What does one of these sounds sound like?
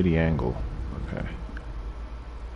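A man speaks through a headset microphone.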